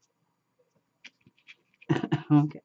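Card paper crinkles as it is folded by hand.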